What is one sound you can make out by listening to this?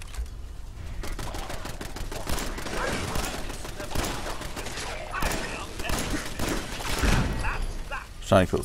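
A gun fires in rapid bursts at close range.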